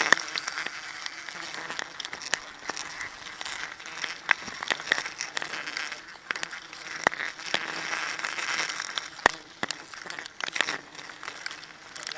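A dense swarm of bees buzzes loudly close by.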